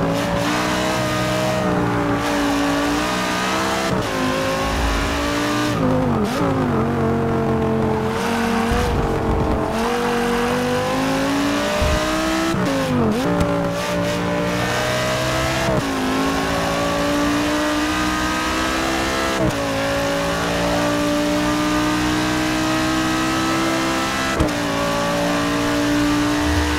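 A racing car engine roars loudly, revving up and down through gear changes.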